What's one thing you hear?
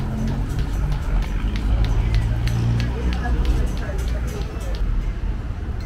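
Footsteps tap on a concrete walkway.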